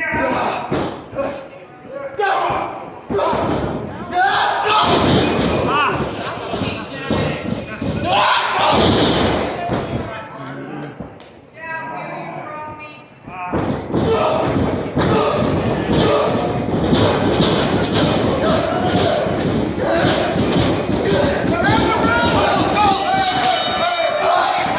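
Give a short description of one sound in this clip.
A ringside crowd shouts and cheers in an echoing hall.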